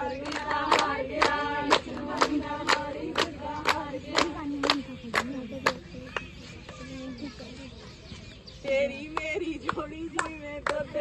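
Women clap their hands in a steady rhythm outdoors.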